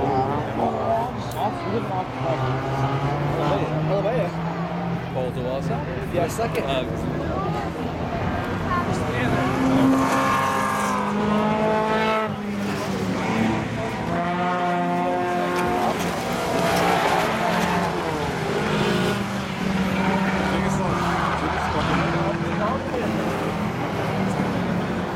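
Race car engines roar and rev as cars speed by.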